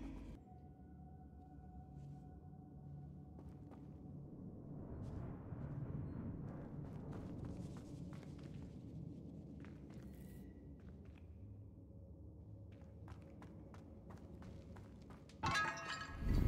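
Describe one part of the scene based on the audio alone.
Footsteps crunch over loose stone and gravel.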